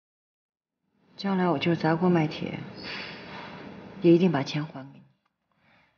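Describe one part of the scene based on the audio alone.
A woman speaks softly and earnestly, close by.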